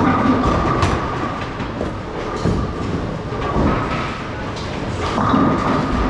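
Bowling balls rumble along wooden lanes in a large echoing hall.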